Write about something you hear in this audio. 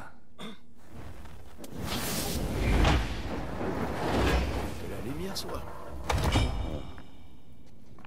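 A low rumble swells with a bright ringing shimmer as light streams in.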